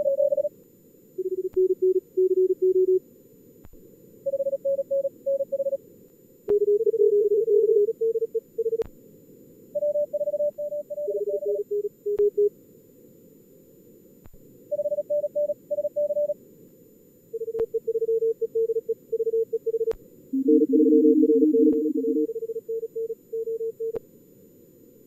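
Morse code beeps in quick bursts of short and long tones, at several different pitches.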